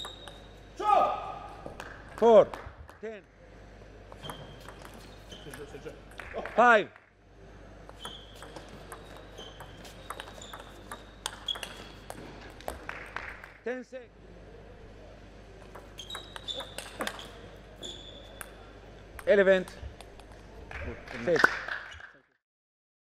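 A table tennis ball clicks rapidly back and forth off paddles and the table.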